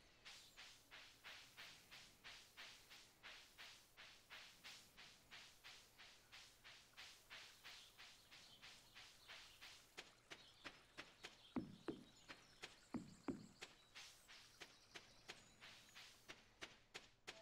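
Quick, light footsteps patter steadily.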